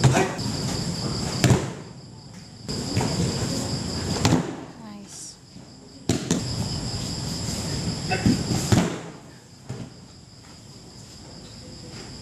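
Bodies thud heavily onto a padded mat as judo players throw each other.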